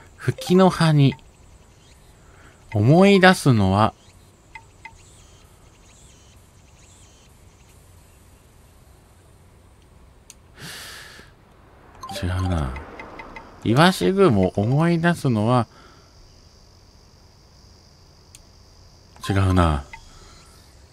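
A menu cursor blips as selections change.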